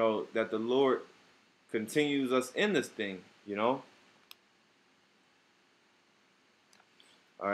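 A young man reads aloud close to the microphone.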